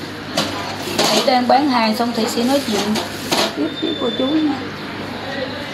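A woman speaks nearby in a casual, lively voice.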